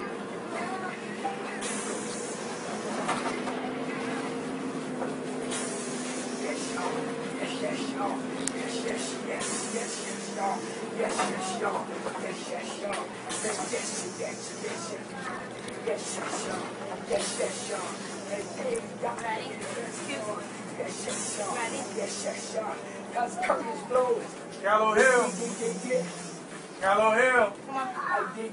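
A woman sings loudly along to music, close by.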